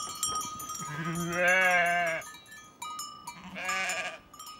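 Sheep bleat loudly nearby.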